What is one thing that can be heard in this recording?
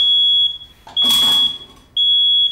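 A metal baking pan clatters onto a stovetop.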